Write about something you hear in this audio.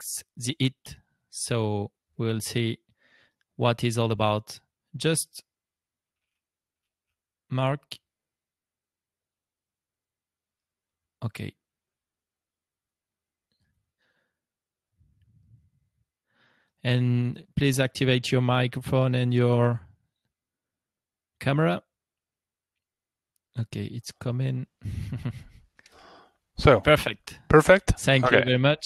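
A middle-aged man speaks calmly into a close microphone, with long pauses.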